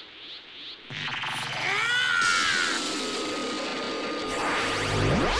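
A huge energy blast roars and swells.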